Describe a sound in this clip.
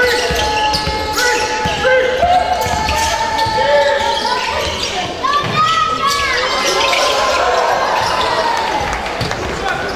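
A basketball bounces and thuds on the floor.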